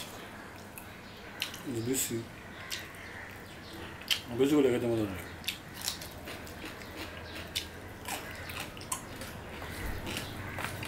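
A man chews food close by, with wet smacking sounds.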